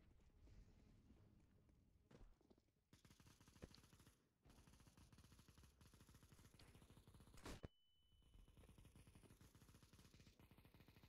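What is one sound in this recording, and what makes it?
Footsteps tread quickly and steadily on hard ground.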